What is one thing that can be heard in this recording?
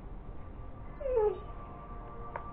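A dog whines softly close by.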